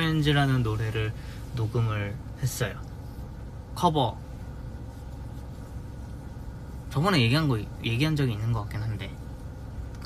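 A young man speaks casually and close by, in short bursts.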